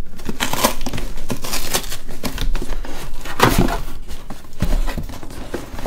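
Cardboard rustles and scrapes as hands open a box.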